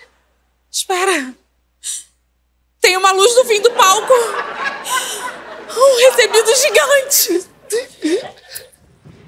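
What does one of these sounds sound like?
A woman speaks loudly and with animation, close by.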